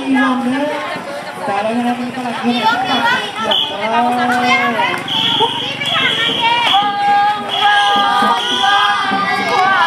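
Children sing together loudly.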